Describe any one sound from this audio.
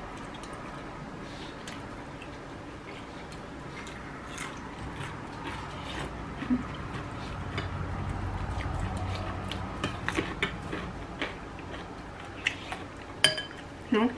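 A spoon clinks against a bowl.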